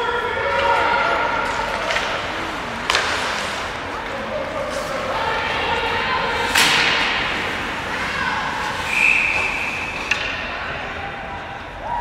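Skate blades scrape and hiss on ice in a large echoing rink.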